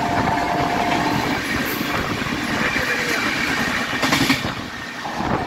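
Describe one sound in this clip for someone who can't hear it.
Another train rushes past close by.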